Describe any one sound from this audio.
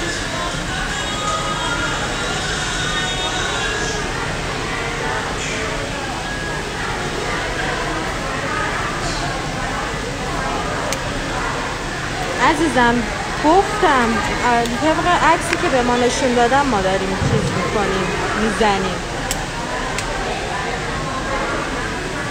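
Electric hair clippers buzz close by.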